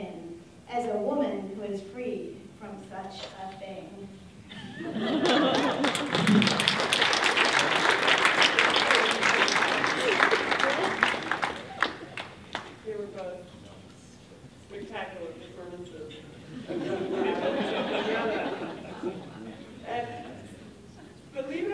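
A middle-aged woman speaks calmly through a microphone in a large echoing room.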